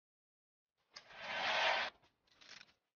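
A hair dryer blows briefly.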